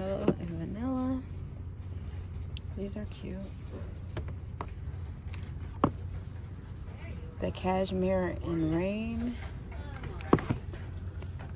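A plastic deodorant stick taps and knocks as a hand picks it up and turns it.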